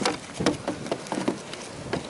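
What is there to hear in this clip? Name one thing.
A car door handle clicks open.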